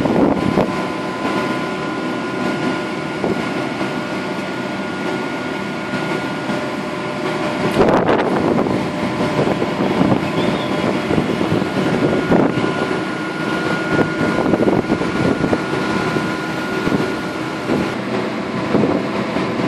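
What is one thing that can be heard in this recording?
A large industrial blower hums steadily nearby.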